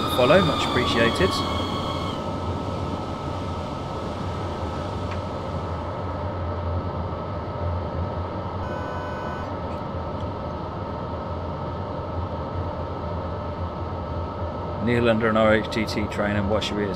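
A train's electric engine hums steadily as it runs along the track.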